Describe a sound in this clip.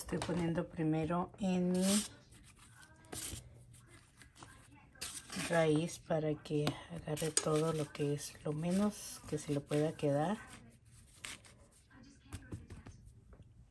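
Hands pat flour onto a soft cabbage leaf.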